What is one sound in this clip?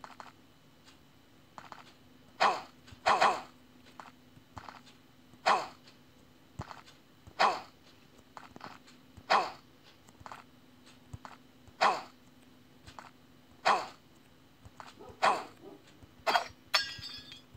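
Quick whooshes sound again and again as a figure leaps through the air.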